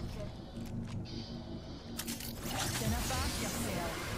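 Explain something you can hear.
A metal door slides open.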